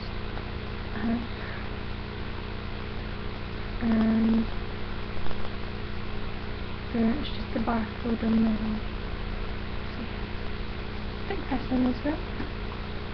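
A young woman speaks softly close by, in short bursts.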